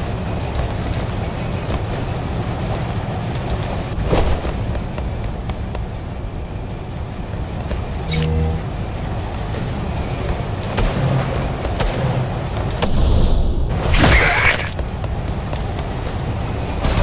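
A deep mechanical rumble drones steadily throughout.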